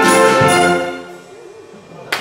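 A brass band holds a final chord that rings out in an echoing hall.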